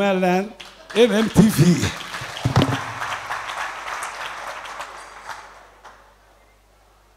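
A crowd of men laughs loudly.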